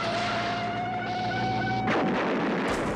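A truck horn blares loudly.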